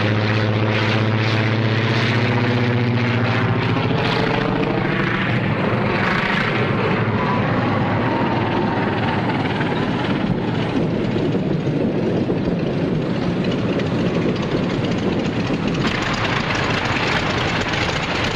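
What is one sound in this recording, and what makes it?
A propeller plane's engine roars steadily.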